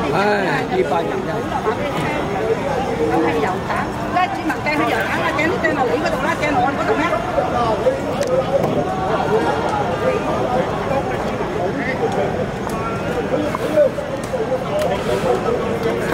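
A crowd of men and women chatter close by outdoors.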